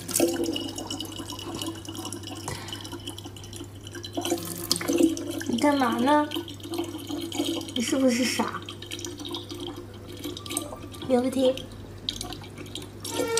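Water trickles from a tap into a plastic bottle.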